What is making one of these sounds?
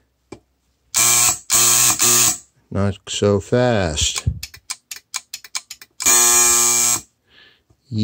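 An electronic device gives long, loud beeps.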